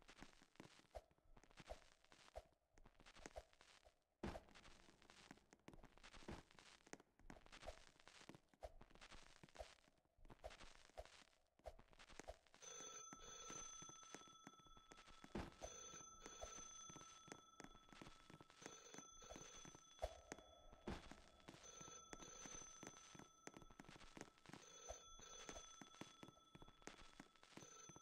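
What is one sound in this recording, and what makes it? A creature's heavy footsteps thud steadily.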